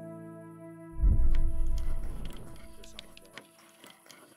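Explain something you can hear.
A heavy metal lock mechanism clunks and rumbles.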